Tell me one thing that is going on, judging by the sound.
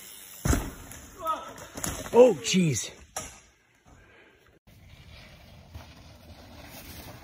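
Bicycle tyres crunch over a dirt trail.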